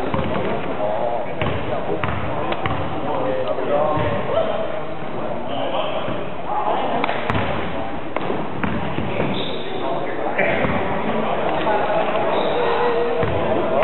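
Young men call out and chatter in a large echoing hall.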